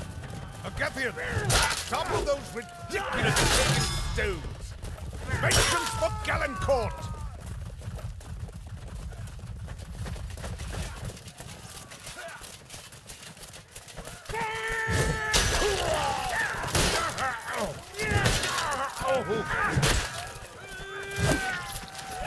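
Steel weapons clash and strike with sharp blows.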